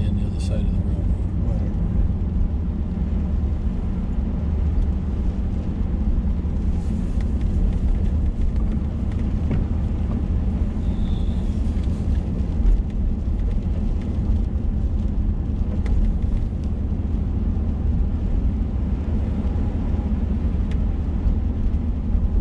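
A car engine hums low and steady inside the car.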